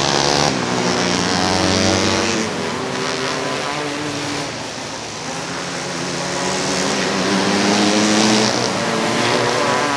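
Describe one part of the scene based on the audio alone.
Racing engines roar loudly as vehicles speed around a dirt track.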